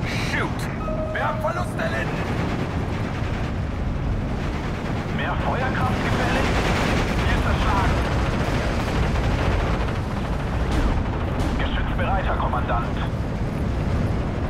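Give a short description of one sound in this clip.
Rockets whoosh overhead in a rapid salvo.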